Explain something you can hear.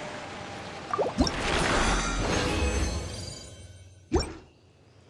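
A bright electronic reward jingle plays.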